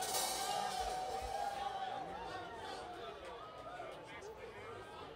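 A live band plays music on stage in a large echoing hall.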